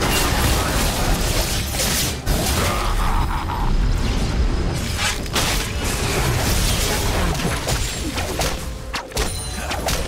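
Magic spells crackle and burst in a fast fight.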